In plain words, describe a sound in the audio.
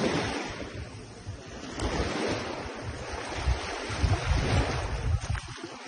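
Small waves wash gently over sand at the water's edge.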